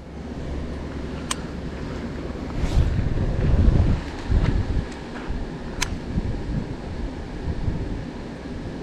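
Wind rumbles against the microphone outdoors, gusting harder for a moment.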